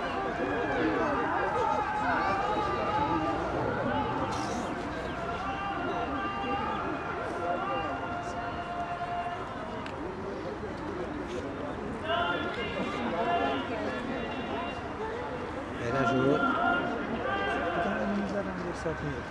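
A small crowd of men and women chatters nearby outdoors.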